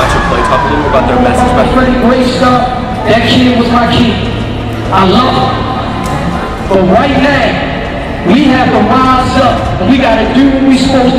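A man talks with animation through a microphone and loudspeaker in a large echoing hall.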